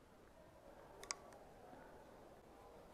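A plastic bottle clicks and crinkles in a hand close by.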